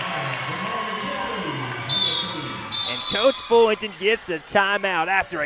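A crowd cheers and murmurs in an echoing gym.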